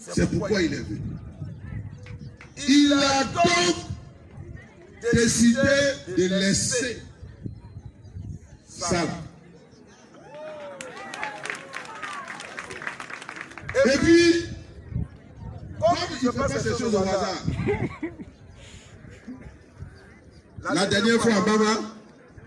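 A man speaks with animation into a microphone, heard outdoors through a loudspeaker.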